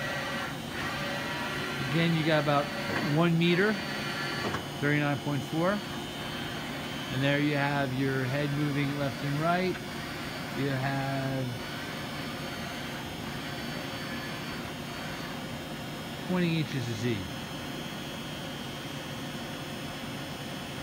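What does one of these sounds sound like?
A machine hums steadily.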